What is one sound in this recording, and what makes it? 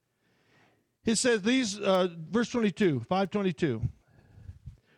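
A middle-aged man reads aloud calmly through a headset microphone.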